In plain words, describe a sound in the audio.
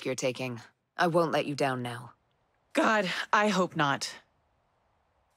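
A woman speaks calmly and close.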